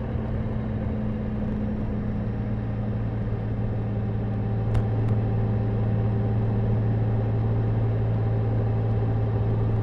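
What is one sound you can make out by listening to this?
A motorcycle engine hums steadily while cruising.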